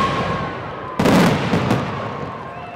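Fireworks burst with loud booms that echo.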